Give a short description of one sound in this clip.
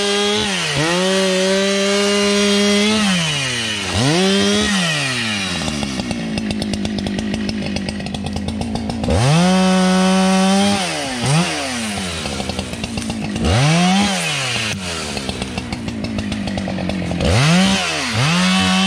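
A chainsaw revs loudly, drops to a rapid idle and revs up again.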